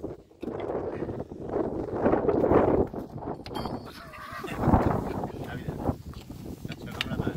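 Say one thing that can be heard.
Metal tyre levers clink and scrape against a wheel rim as a tyre is pried off.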